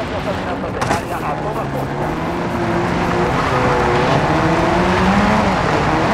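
A vehicle engine revs and rumbles as it drives off.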